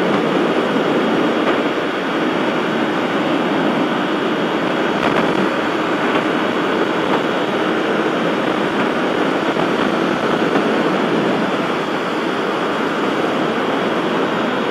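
Wind rushes loudly and steadily past a fast-moving motorcycle.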